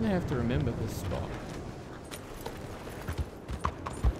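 Horse hooves clop on a dirt road.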